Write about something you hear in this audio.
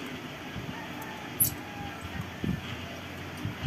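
A tool clinks against metal.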